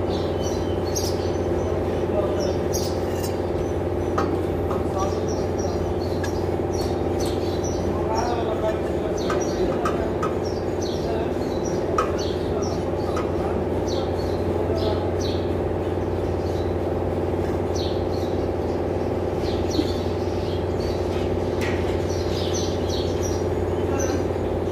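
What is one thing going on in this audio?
A ratchet wrench clicks in quick bursts as bolts are turned.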